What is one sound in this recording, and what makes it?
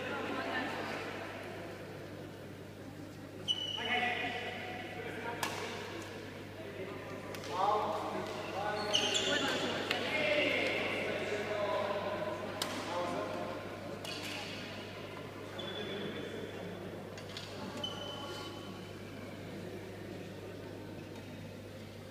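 People chatter in the background of a large hall.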